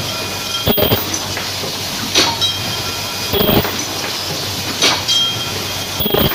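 A machine thumps and clanks in a regular rhythm.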